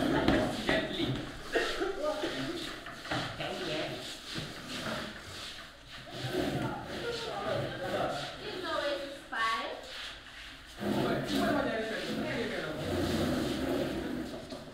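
Teenage boys and girls chatter and talk over each other nearby.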